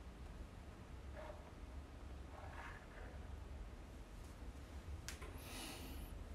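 Fabric rustles softly close by.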